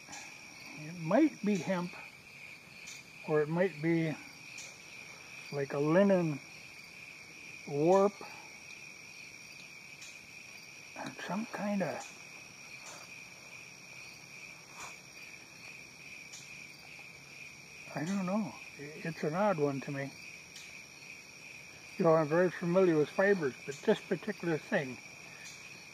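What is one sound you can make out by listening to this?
An elderly man speaks calmly in short phrases, close by, outdoors.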